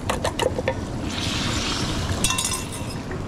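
Egg sizzles on a hot griddle.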